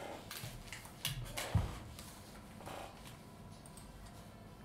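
Paper rustles and crinkles close by.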